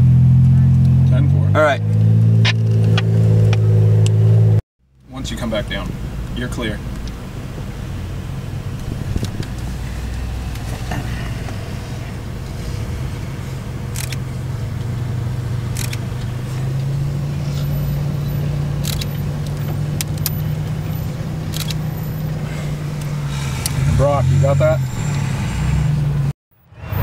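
An off-road truck's engine rumbles and revs as it climbs a steep dirt slope.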